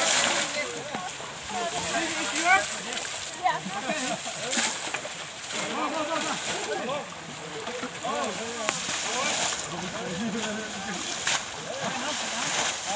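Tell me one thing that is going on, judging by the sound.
A group of young men and women chat and call out to one another outdoors.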